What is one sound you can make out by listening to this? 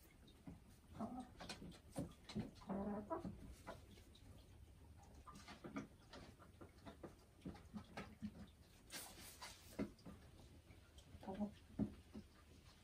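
A hen clucks and croons softly close by.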